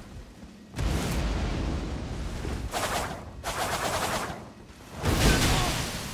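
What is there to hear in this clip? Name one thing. Magical bursts whoosh and crackle.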